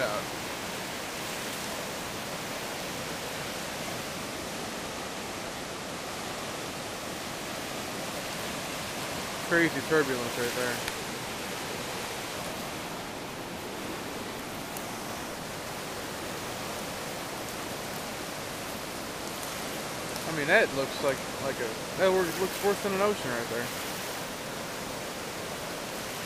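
A river rushes steadily over rapids outdoors.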